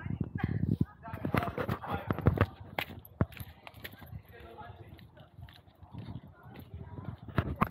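Footsteps crunch on gravel and stone.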